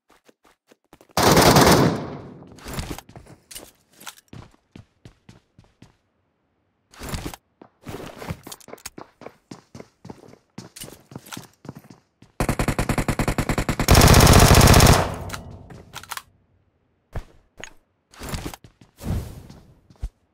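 Footsteps tap quickly across a hard floor.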